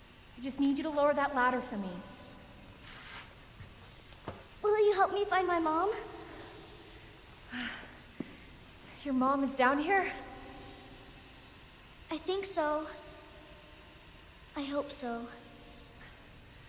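A young woman speaks calmly in short phrases, with pauses between them.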